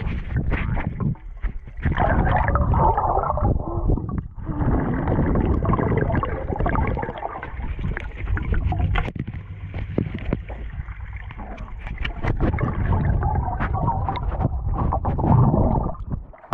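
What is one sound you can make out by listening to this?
Swimmers' hands sweep through the water with whooshing sounds.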